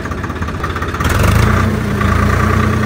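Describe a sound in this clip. A tractor engine cranks and starts up.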